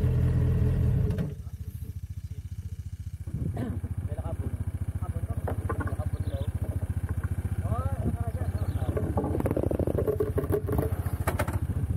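A motorcycle engine idles close by with a steady putter.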